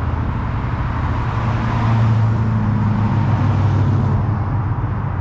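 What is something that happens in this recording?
A second car's engine rumbles as it drives past close by.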